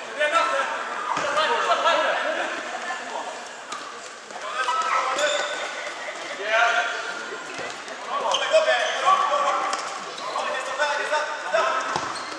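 A ball is kicked and bounces on a hard floor in a large echoing hall.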